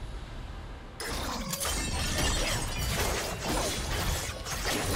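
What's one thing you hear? A burst of loud game spell effects crackles and roars.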